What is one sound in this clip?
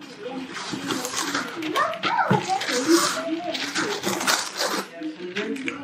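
A sheet of parchment paper tears.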